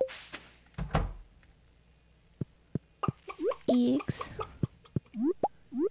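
A chicken clucks softly.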